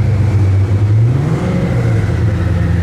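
A supercar engine revs up briefly.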